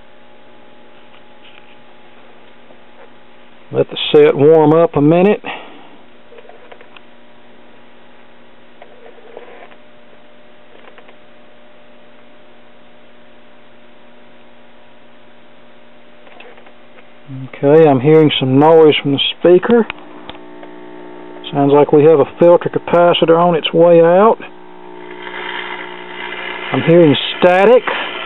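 A radio hums steadily in the background.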